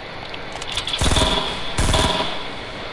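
Gunshots fire in loud, quick bursts.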